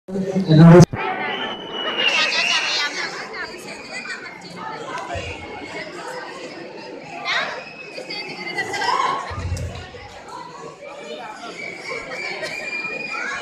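Young men and women sing together loudly in a large echoing hall.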